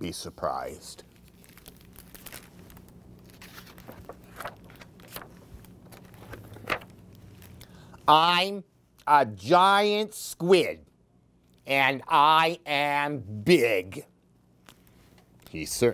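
A middle-aged man reads aloud with animation, close to a microphone.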